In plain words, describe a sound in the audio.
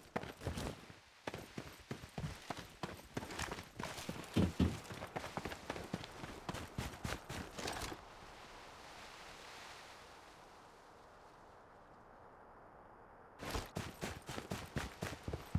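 Quick footsteps thud and patter on the ground.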